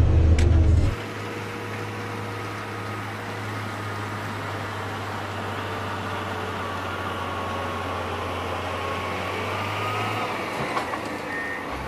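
A road grader's engine hums at a distance as it approaches.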